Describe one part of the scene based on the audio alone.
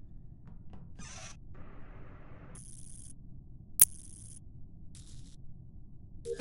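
Short electronic chimes sound as wires snap into place.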